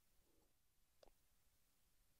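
A short menu click sounds as the selection changes.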